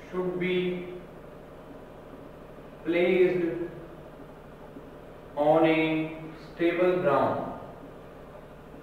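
A man speaks slowly in short phrases, close to a microphone, with pauses between.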